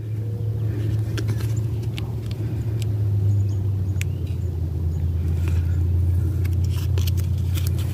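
Paper crinkles softly as a sticker's backing is peeled off.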